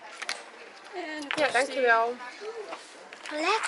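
A young girl speaks in a high voice close by.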